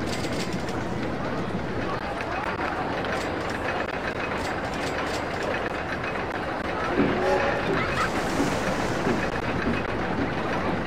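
A roller coaster train rattles and rumbles along its track.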